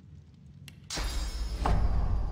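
A magical burst whooshes.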